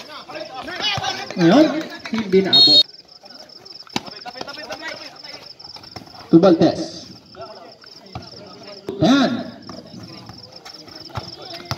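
A basketball bounces on a hard outdoor court.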